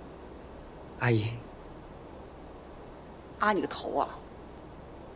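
A young woman speaks sharply, close by.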